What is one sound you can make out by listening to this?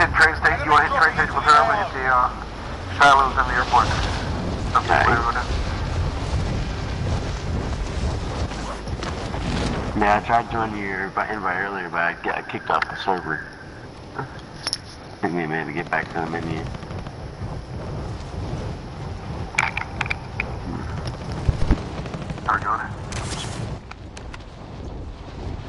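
Wind rushes loudly past a falling skydiver.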